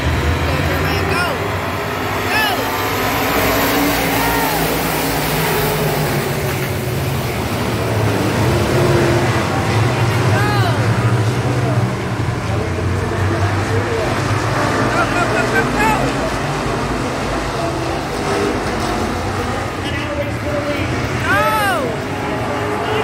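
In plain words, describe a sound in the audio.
Engines rev up and down as cars pass close by.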